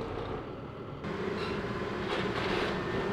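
An excavator bucket crashes through wooden roof framing, snapping and cracking timber.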